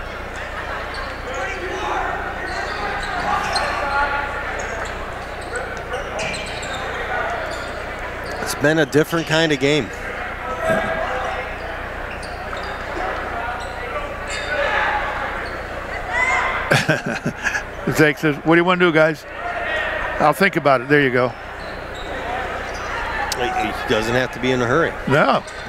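A crowd murmurs and calls out in a large echoing gym.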